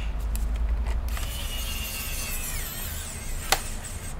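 A cable rattles as gloved hands coil it.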